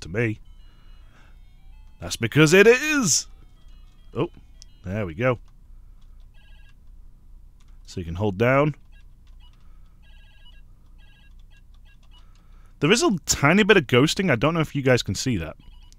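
Buttons on a handheld game console click softly as they are pressed.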